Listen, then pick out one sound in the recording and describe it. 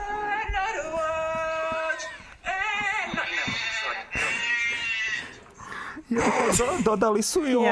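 A young man laughs helplessly near a microphone.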